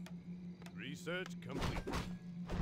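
A magic spell rings out with a rising shimmer.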